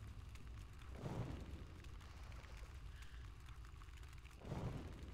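A magic spell strikes with a short whooshing burst.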